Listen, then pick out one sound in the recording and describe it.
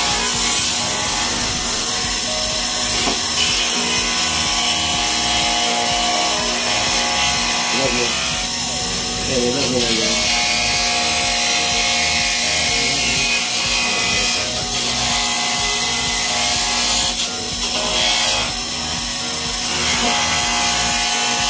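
A screwdriver scrapes and clicks against small metal parts.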